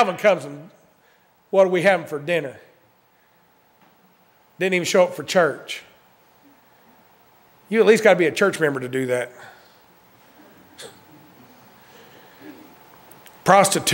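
A man speaks forcefully into a microphone, in short bursts with pauses.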